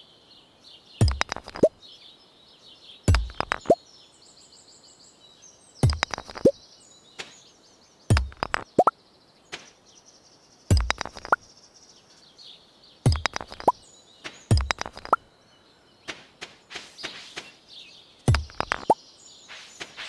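A pickaxe strikes stone again and again with sharp, ringing cracks.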